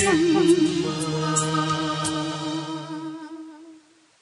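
An electronic keyboard plays along.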